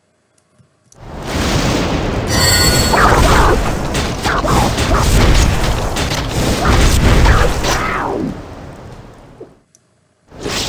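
A magic spell bursts with a fiery whoosh.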